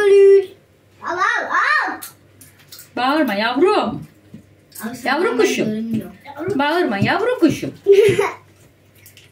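A young girl talks playfully close by.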